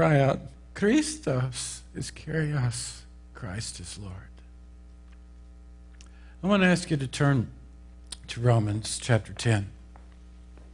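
An older man speaks calmly through a microphone.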